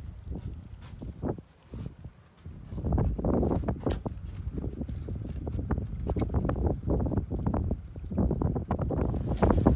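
Wooden objects knock and thump in a boat.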